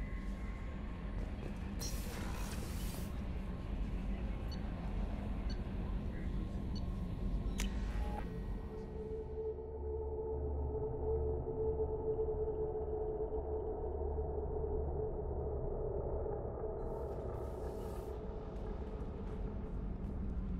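Footsteps tap on a metal floor.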